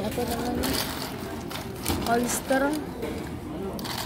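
Metal tongs clink and scrape against ice cubes.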